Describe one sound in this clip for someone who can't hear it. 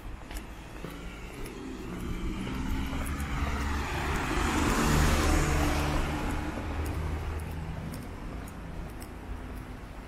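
A van drives past close by, its engine rising and then fading.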